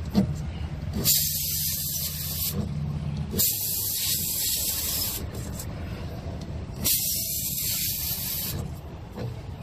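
Air hisses sharply from a tyre valve in short bursts.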